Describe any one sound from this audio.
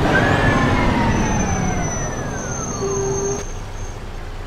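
A bus engine hums and whines as the bus slows down.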